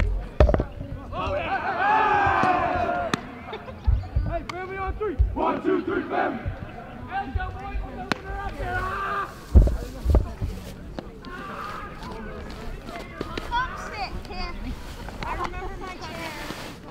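Young men shout and chatter across an open field outdoors.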